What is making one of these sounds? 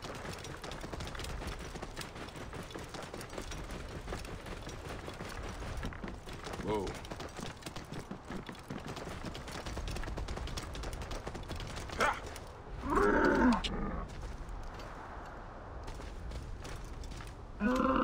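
A horse's hooves clop steadily over sand and rock.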